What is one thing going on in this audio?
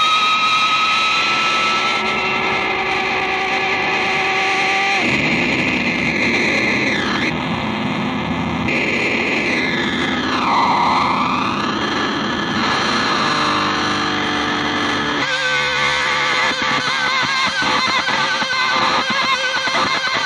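An electric guitar plays loud, distorted feedback and noise through an amplifier.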